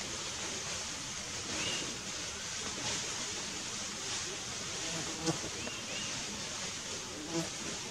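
Leaves and twigs rustle as an elephant forages at the roadside.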